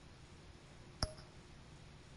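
A short electronic click sounds as a menu selection moves.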